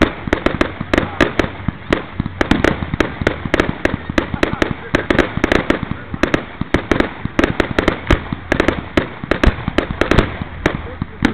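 Fireworks bang and crackle in rapid bursts close by.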